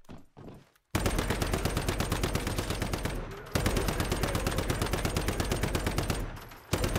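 A rifle fires in rapid automatic bursts.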